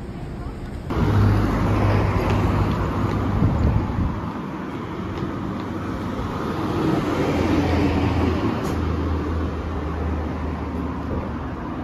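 Traffic rumbles along a nearby street outdoors.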